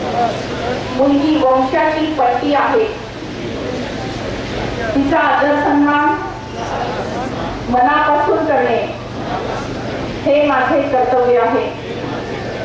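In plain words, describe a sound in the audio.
A large crowd of men and women recites an oath together in loud unison, phrase by phrase.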